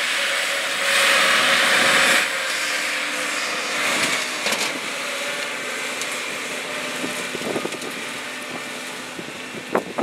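A tractor engine rumbles steadily as the tractor drives past and slowly fades.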